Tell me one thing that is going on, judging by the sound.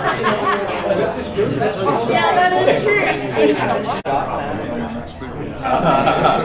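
Several adults chat and talk over one another nearby, in a room with some echo.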